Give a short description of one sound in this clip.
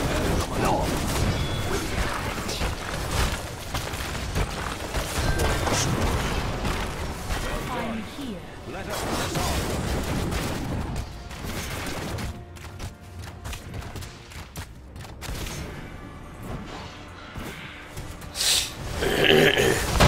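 Game combat sounds clash and crackle with bursts of magic and blows.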